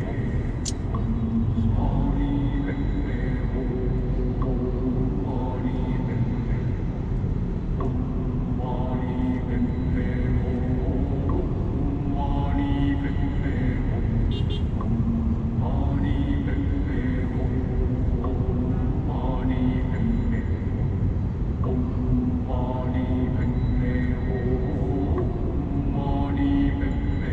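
A car engine hums steadily while driving in traffic.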